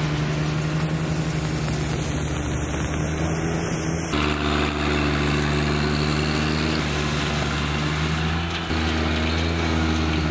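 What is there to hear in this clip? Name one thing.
A lawn sweeper's brushes whir and rustle through grass and leaves.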